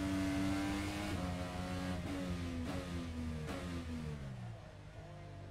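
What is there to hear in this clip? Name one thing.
A single-seater racing car engine downshifts while braking.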